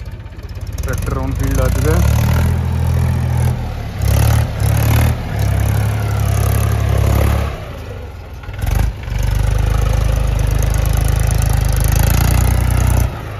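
A car engine revs.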